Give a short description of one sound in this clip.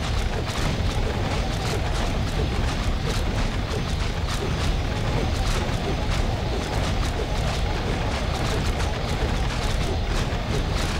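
Magic blasts crackle and weapons clash in a rapid fight.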